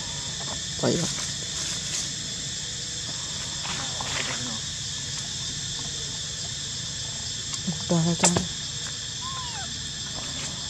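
Young monkeys squeal and chirp nearby.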